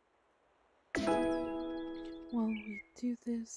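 A short bright chime rings as a game menu opens.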